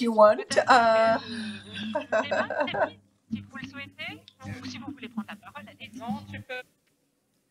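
A woman laughs and talks with animation over an online call.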